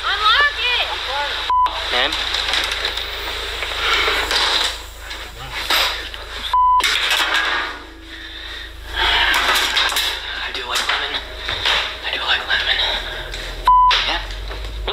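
A man talks over an online call, heard through a phone speaker.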